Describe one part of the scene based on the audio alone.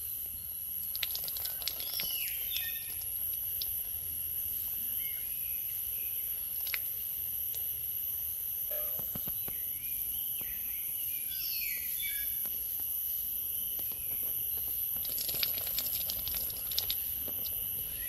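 A metal pot clinks and scrapes as it is handled.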